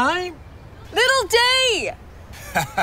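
A young woman shouts excitedly.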